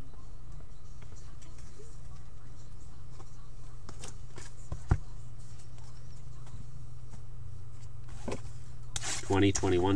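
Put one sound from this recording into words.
Foil packs and cardboard rustle and crinkle as cards are handled.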